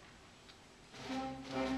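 A band starts playing together.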